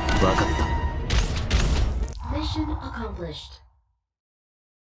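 A video game's battle sound effects and music play loudly, then fade to silence.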